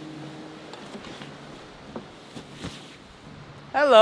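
An acoustic guitar is strummed softly.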